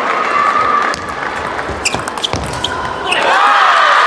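A table tennis ball clicks sharply back and forth off paddles and the table.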